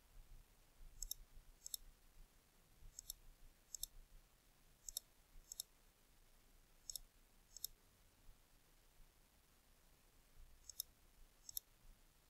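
A computer mouse clicks in quick pairs.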